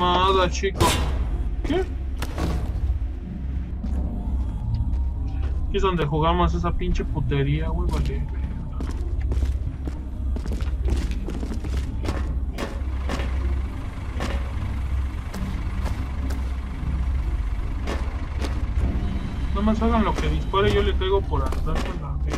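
A young man talks with animation into a nearby microphone, in short bursts.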